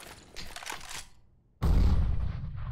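A rifle fires a single loud, booming shot that echoes.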